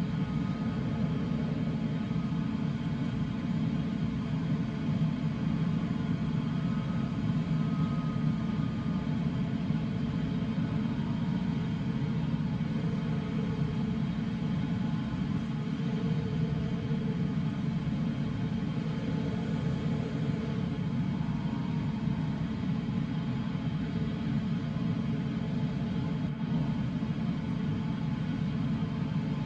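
Wind rushes steadily over a glider's canopy in flight.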